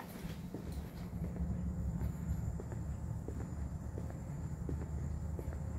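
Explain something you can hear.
Ventilation hums steadily in a large open hall.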